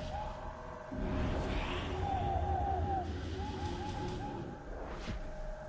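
A deep magical whoosh swells and rumbles.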